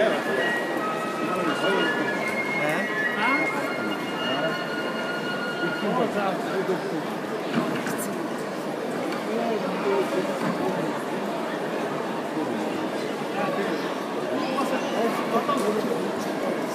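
A large crowd chatters and murmurs loudly in a big echoing hall.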